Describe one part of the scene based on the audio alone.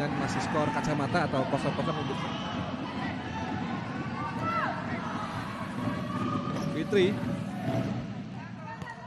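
A group of young women on the sideline cheers and shouts loudly in a large echoing hall.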